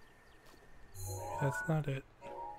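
A soft chime plays as a menu opens.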